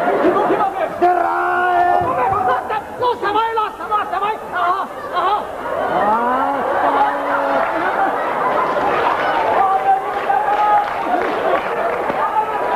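Men shout and talk with animation nearby, in a large echoing hall.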